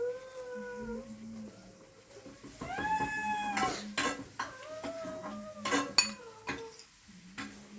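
A man talks in a drawn-out, sing-song voice close by.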